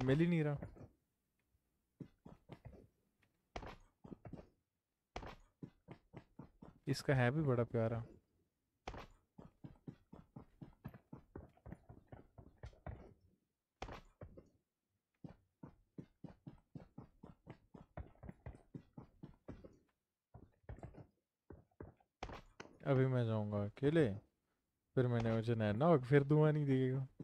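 Footsteps thud quickly and steadily on grass.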